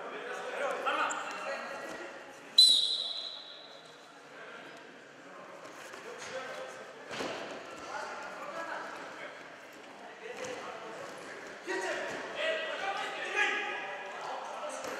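A crowd of young men chatters and calls out in an echoing hall.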